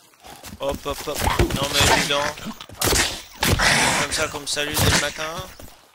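A creature strikes with heavy, thudding blows.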